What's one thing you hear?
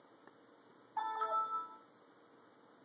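A computer plays a short, bright startup chime.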